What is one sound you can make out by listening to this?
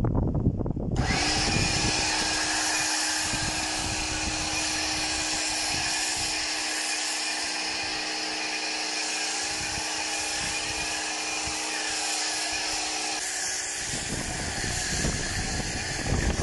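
A pressure washer's foam sprayer hisses loudly and steadily.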